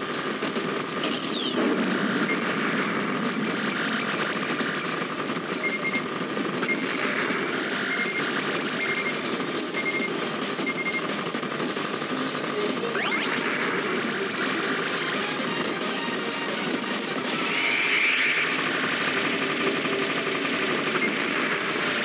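Sparkling chimes ring out as many points are scored at once.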